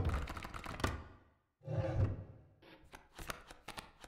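A wooden lid creaks open.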